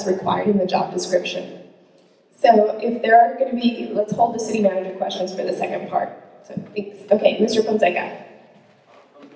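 A young woman speaks calmly through a microphone and loudspeaker.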